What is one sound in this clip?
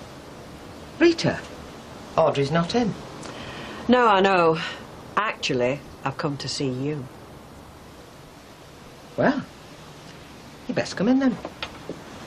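A second woman answers in a raised, indignant voice, close by.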